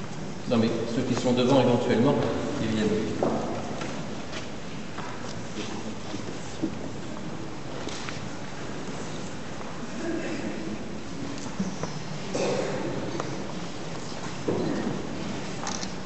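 An elderly man speaks in a large echoing hall.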